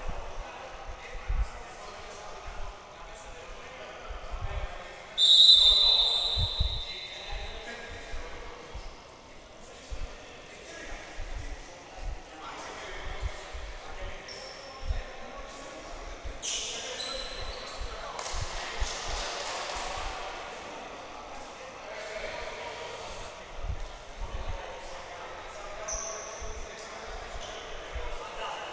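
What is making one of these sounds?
Sneakers squeak on a gym floor in a large echoing hall.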